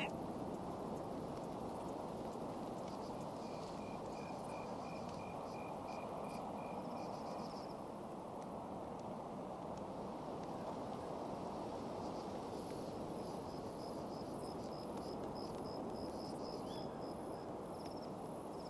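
Wind blows steadily through tall grass outdoors.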